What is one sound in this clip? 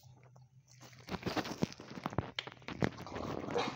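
A dog sniffs loudly up close.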